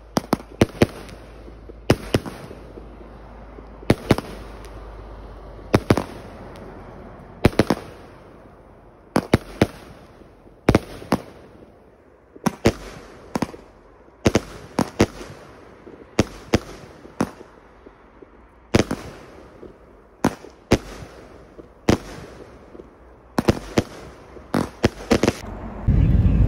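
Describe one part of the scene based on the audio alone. Fireworks burst with loud bangs, one after another, outdoors.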